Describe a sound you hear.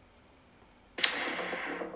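Game music bursts loudly from a phone speaker.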